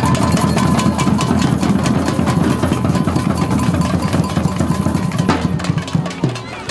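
A group of drummers beats drums in a steady rhythm.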